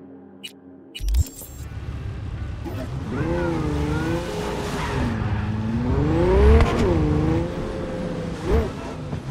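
A car engine roars and revs as the car speeds along.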